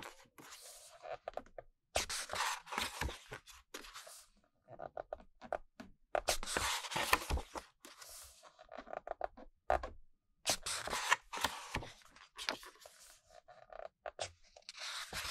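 Glossy pages rustle and flap as a book is leafed through close by.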